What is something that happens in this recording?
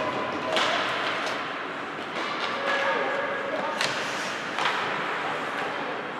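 Ice skates scrape and hiss across the ice in a large echoing arena.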